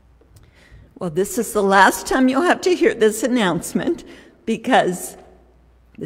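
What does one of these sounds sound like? An elderly woman speaks with animation into a microphone.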